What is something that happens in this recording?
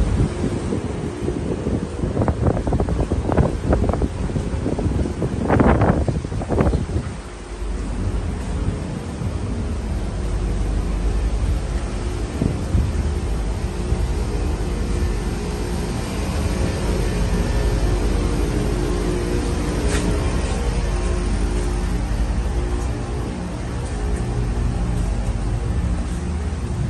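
A ship's engine hums low and steadily.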